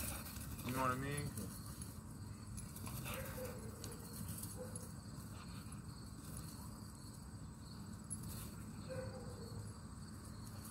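A man calls out to a dog outdoors.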